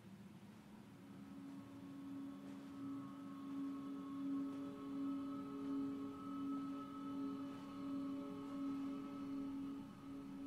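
A handheld electronic device hums with a low, pulsing drone that grows louder.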